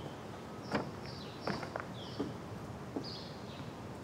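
Footsteps thud on wooden porch steps.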